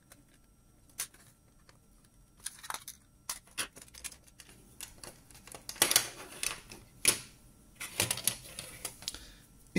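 Plastic parts click and snap as a casing is pried open.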